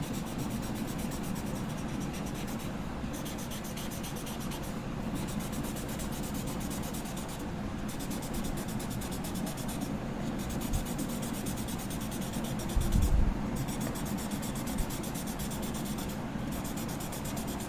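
A blending stick rubs softly across paper.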